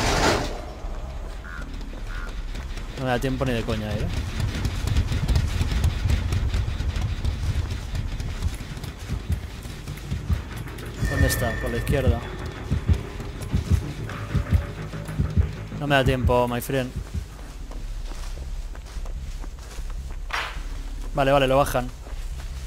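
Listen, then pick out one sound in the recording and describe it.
Footsteps run through rustling tall plants.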